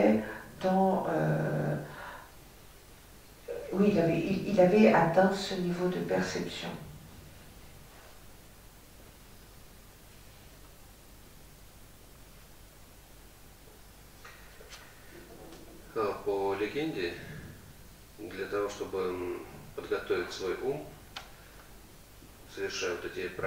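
An elderly man speaks calmly through a microphone, with long pauses.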